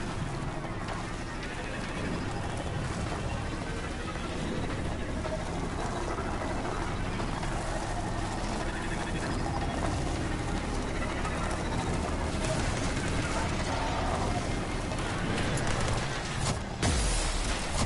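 A vehicle engine hums and roars steadily at speed.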